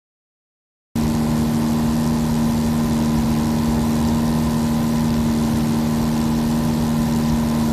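A propeller engine drones steadily, heard from inside a small plane's cabin.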